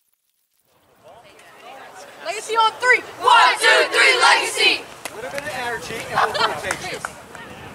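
A group of boys chant and cheer together loudly outdoors.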